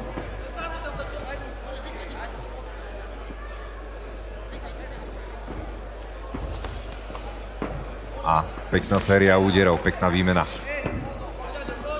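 A crowd murmurs in a large room.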